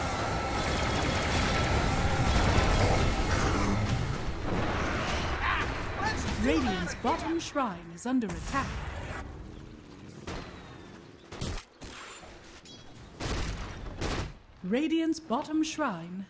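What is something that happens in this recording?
Magic blasts and clashing weapons crackle and whoosh in a busy fight.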